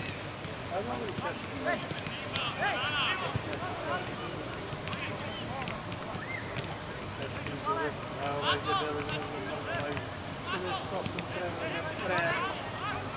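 Men shout to each other outdoors, some distance away.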